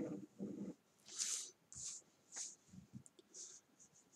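A pencil scratches lines on paper.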